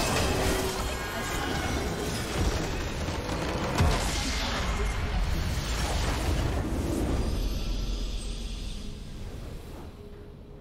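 Game spell effects crackle and boom in a busy battle.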